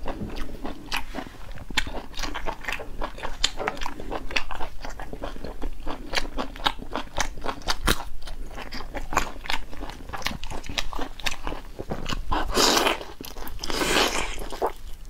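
A young woman chews and smacks wet food loudly and close to a microphone.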